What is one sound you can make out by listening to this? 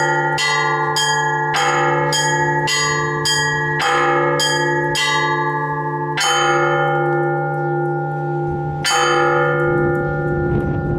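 Small church bells ring out in a quick, lively pattern, each strike ringing on.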